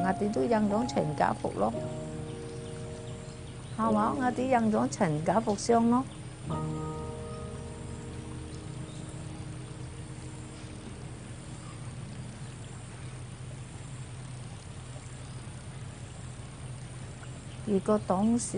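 An elderly woman speaks softly and shakily, close by.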